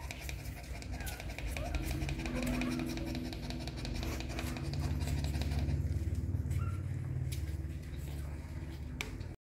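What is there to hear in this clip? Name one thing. A dog pants rapidly close by.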